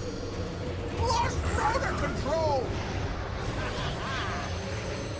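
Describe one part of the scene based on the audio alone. Magical spell effects whoosh and shimmer.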